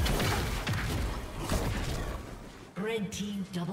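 Bursts and crackles of fighting spell effects ring out in quick succession.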